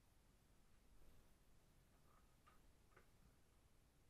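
Small plastic connectors click softly close by.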